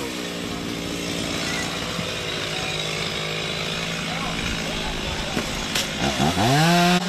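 Leafy tree branches rustle as they are dragged over the ground.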